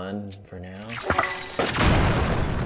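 A bomb explodes with a loud boom.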